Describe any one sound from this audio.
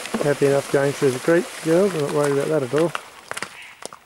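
Water splashes as horses wade through a shallow stream.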